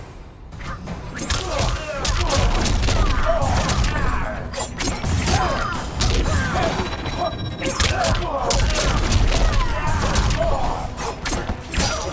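Punches and kicks land with heavy thuds and smacks.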